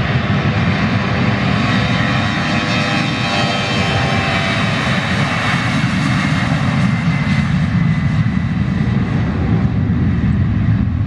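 A twin-turbofan jet airliner roars at takeoff power as it speeds down the runway.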